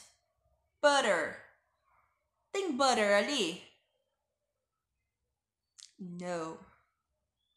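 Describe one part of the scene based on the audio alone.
A woman speaks clearly and slowly into a close microphone, in short phrases with pauses.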